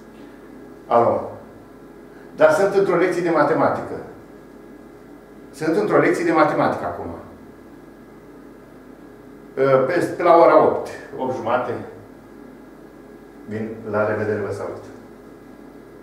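An elderly man talks on a phone in short bursts, close by.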